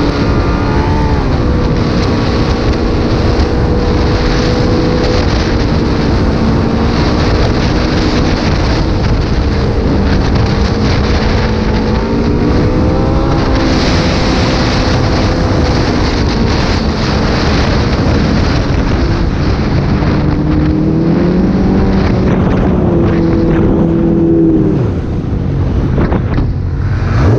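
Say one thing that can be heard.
Snowmobile skis hiss and rumble over packed snow.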